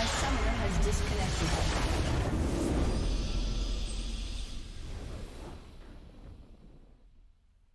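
A triumphant victory fanfare swells and then fades away.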